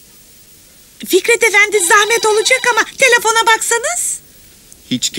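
A woman speaks with animation.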